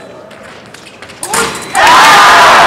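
Fencing blades clash briefly.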